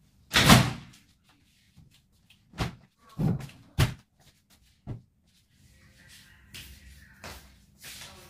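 Clothes rustle as they are unpacked.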